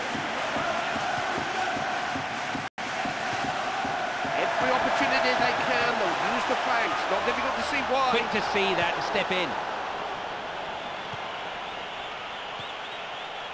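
A large crowd murmurs and roars steadily in a stadium.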